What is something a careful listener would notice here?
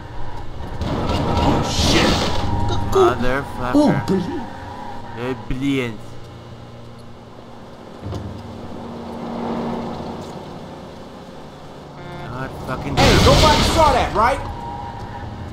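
Car tyres screech during sharp turns.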